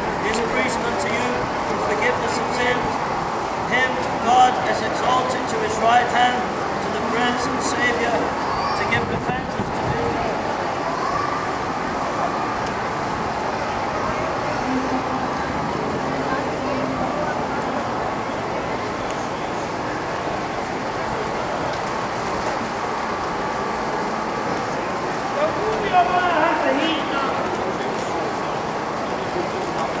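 Many people murmur and chatter in the background of a busy outdoor street.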